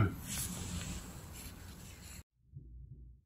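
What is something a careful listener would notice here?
A man speaks quietly close by.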